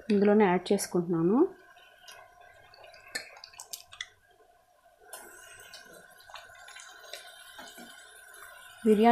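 Food sizzles quietly in a hot pan.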